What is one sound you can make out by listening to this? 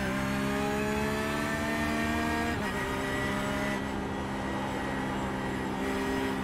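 A racing car engine roars, its pitch climbing steadily.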